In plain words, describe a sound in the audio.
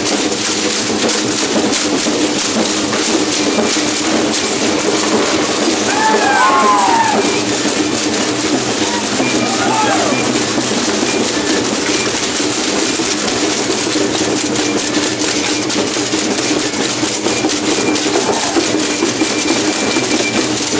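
Rattles shake and clatter steadily as dancers stomp along.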